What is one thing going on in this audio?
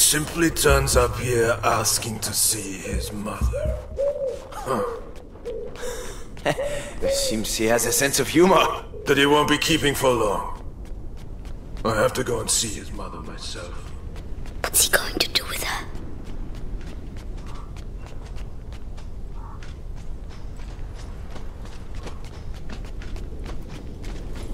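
Quick footsteps crunch and patter as a child runs.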